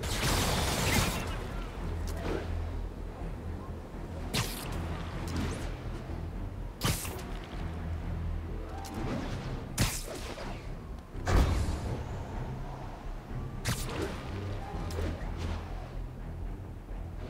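Wind rushes past in repeated swooping whooshes.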